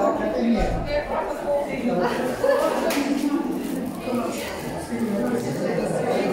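Cellophane wrapping on flowers crinkles.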